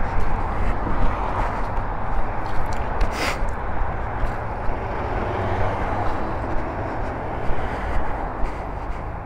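Cars pass by on a road nearby.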